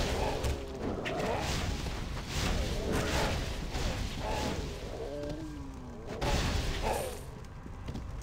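Game combat clashes and thuds.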